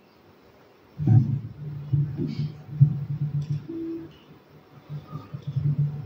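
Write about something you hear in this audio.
A guitar is plucked in slow, soft notes.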